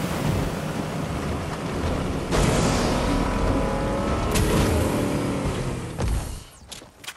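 A vehicle engine roars loudly while the vehicle drives up a grassy slope.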